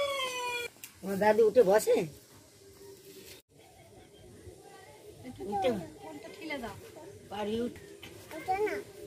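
A young boy speaks with animation close by.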